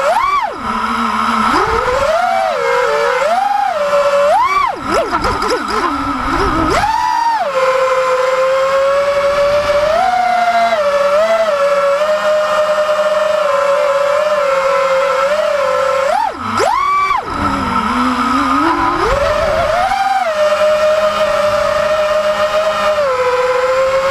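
Small drone propeller motors whine loudly up close, rising and falling in pitch as they speed up and slow down.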